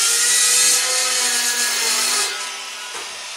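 A chop saw grinds loudly through metal.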